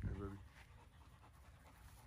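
A large dog pants.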